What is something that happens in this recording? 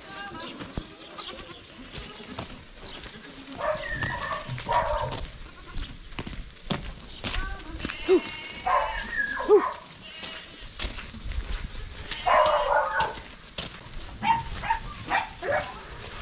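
Goats bleat loudly.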